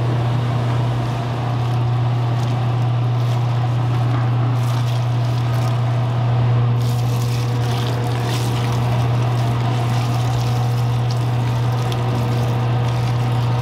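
Water splashes and pours onto flour.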